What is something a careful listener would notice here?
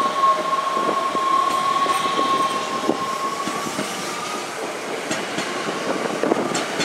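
A train's wheels clack over rail joints as it rolls slowly past.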